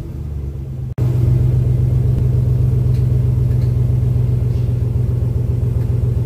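A truck engine idles with a loud, steady low rumble.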